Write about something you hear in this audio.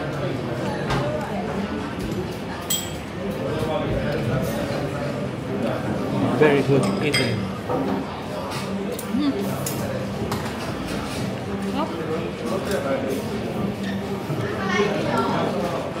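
A young woman talks casually close by.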